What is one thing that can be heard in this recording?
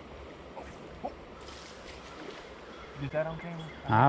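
A fishing line whizzes out during a cast.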